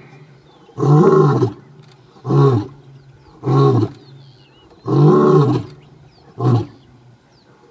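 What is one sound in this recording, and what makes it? A lion roars in deep, repeated grunting bursts close by.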